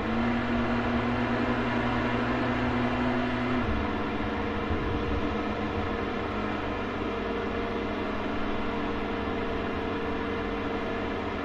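A vehicle engine drones steadily as it drives over rough ground.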